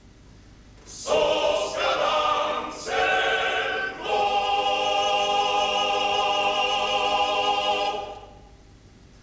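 A men's choir sings a final chord in a hall.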